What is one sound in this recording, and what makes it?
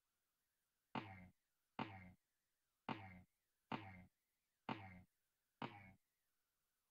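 A video game character's footsteps patter in quick succession.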